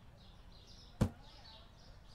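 A metal shelf drops into place with a short sharp thud.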